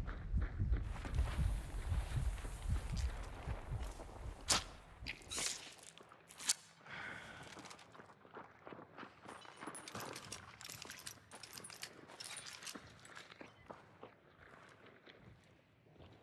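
Footsteps tread across a floor.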